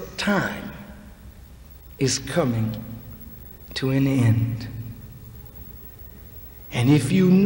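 A man speaks slowly and with emphasis into a microphone, in bursts with pauses, in a large echoing hall.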